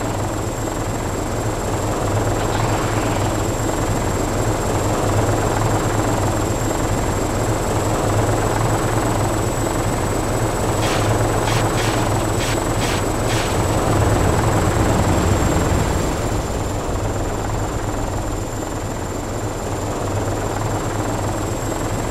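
A helicopter engine drones steadily with whirring rotor blades.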